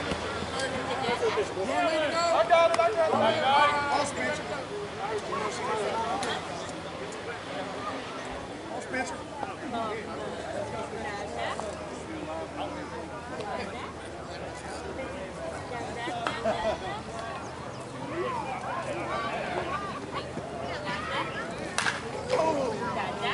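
Men call out and talk across an open field.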